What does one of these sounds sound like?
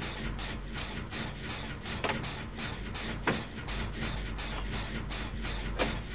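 A machine rattles and clanks during repairs.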